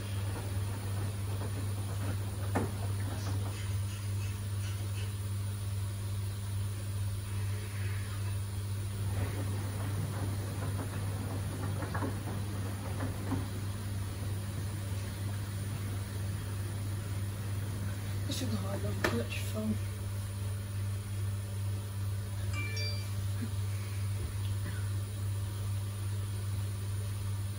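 Laundry tumbles and thumps softly inside a washing machine drum.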